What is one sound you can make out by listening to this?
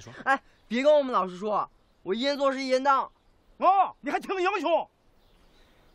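A teenage boy speaks up loudly and with emotion, close by.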